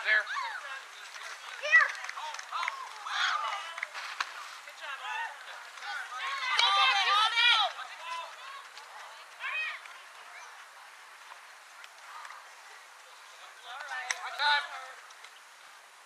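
Girls shout and cheer excitedly nearby, outdoors.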